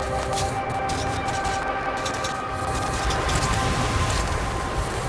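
Strong wind roars and gusts steadily outdoors.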